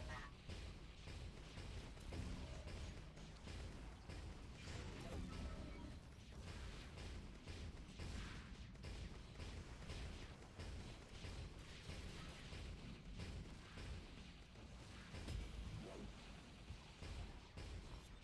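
Energy weapons fire in bursts during a video game fight.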